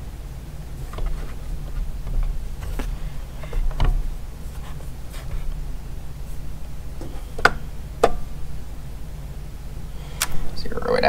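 Fingers press and tap on a kitchen scale.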